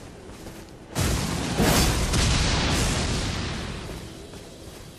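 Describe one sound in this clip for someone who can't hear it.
A magic spell bursts with a loud crackling rush that slowly fades.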